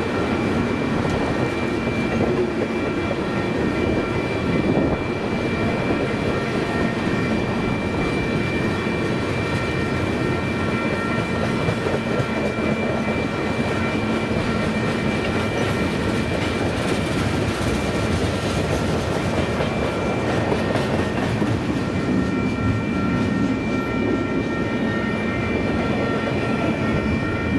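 Steel wheels squeal with a high, steady ringing as freight cars pass.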